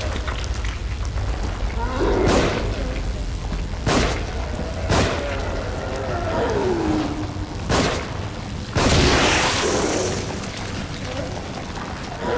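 A monster groans and snarls close by.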